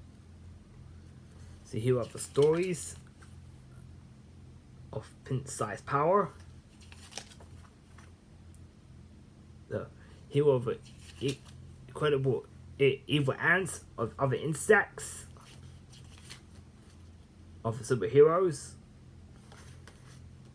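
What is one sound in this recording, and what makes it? Paper pages rustle as a booklet is handled.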